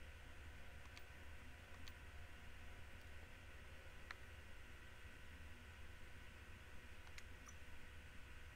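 Short soft menu clicks blip now and then.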